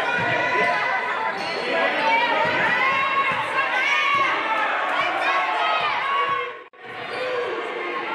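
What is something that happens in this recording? Sneakers squeak sharply on a hardwood court.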